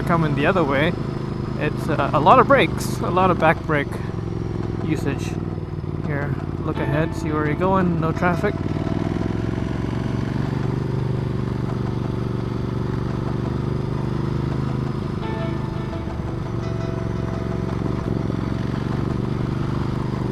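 A motorcycle engine hums steadily while riding along.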